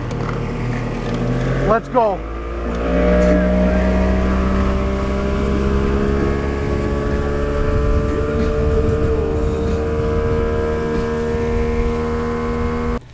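Water rushes and splashes against a fast-moving boat's hull.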